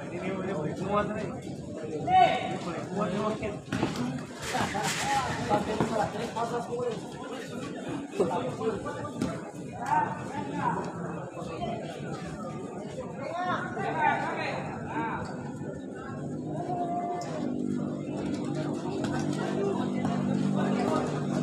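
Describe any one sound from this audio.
Young men shout to each other across the court.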